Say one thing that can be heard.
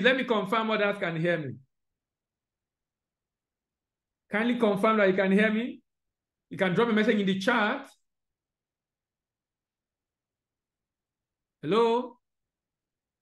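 A man speaks calmly through an online call, in short bursts with pauses.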